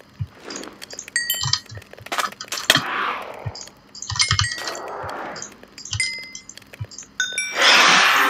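Short clicks sound as items are moved between slots.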